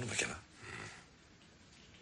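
A younger man speaks in a low voice.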